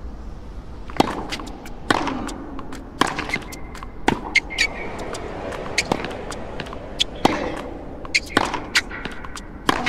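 A tennis racket strikes a ball again and again in a rally.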